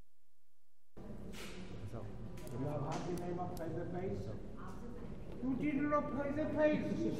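A young woman talks warmly up close.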